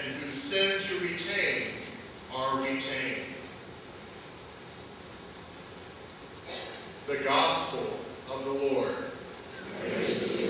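A man speaks slowly and calmly through a microphone in a large echoing hall.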